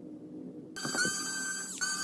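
A small screwdriver turns a tiny screw.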